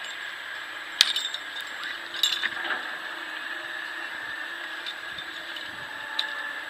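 A climbing rope rustles and clinks against metal gear close by.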